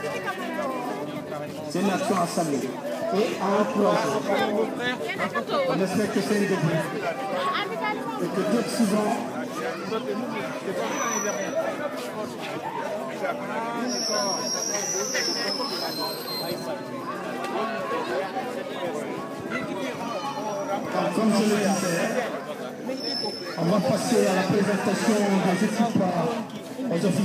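A man greets people calmly.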